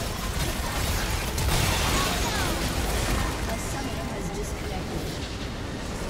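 Spells crackle and blast in a busy fight.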